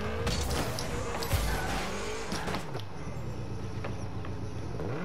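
A video game car engine roars steadily.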